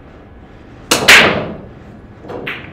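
Billiard balls break apart with a loud clatter.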